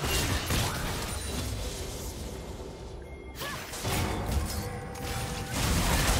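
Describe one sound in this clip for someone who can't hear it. Game spell effects whoosh and crackle in a fast fight.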